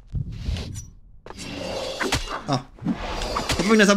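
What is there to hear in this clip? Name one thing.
A sword swings and clangs against armour.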